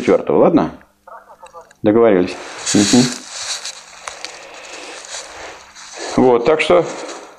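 A middle-aged man speaks calmly in an echoing room.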